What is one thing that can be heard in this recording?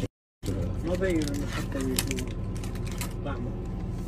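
A paper packet rustles in hands.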